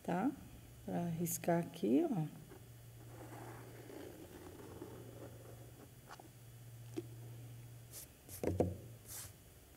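A woman speaks calmly into a nearby microphone.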